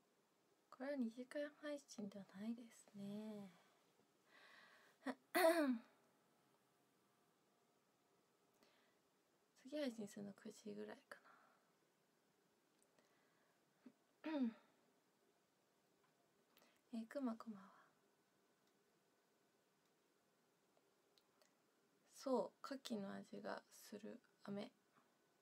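A young woman talks calmly and close to a microphone, in short bursts with pauses.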